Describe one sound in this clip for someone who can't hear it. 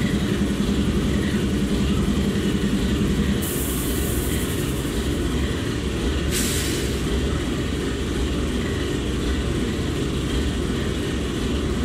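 Diesel locomotives idle with a low, steady rumble.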